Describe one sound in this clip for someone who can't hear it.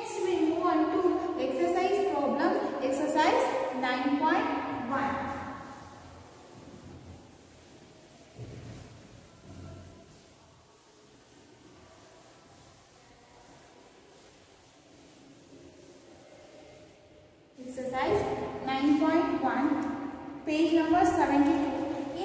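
A young woman speaks clearly and steadily, close by.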